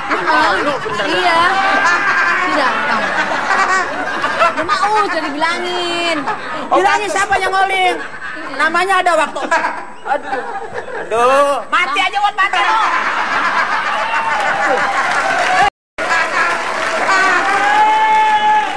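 A middle-aged man laughs loudly and heartily.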